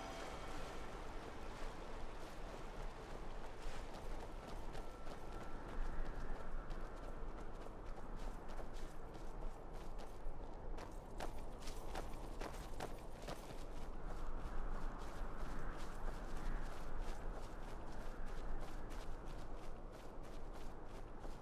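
Armored footsteps thud on grassy ground.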